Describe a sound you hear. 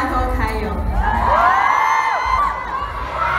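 A young woman squeals with excitement close by.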